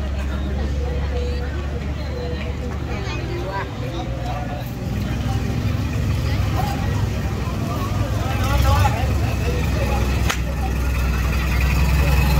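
Adult men and women chat in the distance outdoors.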